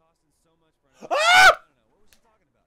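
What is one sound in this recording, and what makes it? A young man shouts with excitement close to a microphone.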